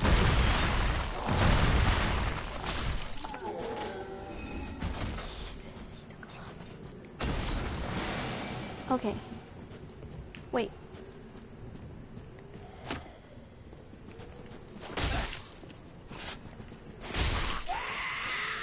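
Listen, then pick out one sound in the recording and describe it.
Sword blows clang and thud in a fight.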